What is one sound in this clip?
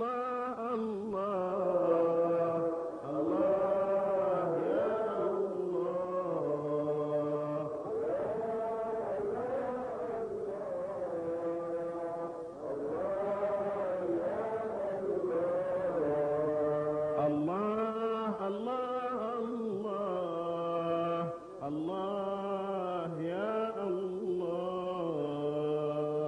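An elderly man chants in a long, wavering melody into a microphone, heard through loudspeakers.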